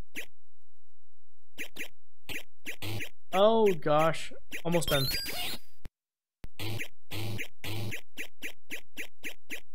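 Retro arcade game sounds beep and tick in a steady, quick rhythm.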